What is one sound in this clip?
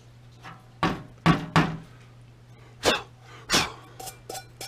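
A metal pot knocks against a metal tray.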